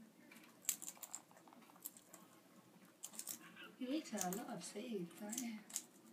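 An Australian ringneck parrot cracks seeds with its beak.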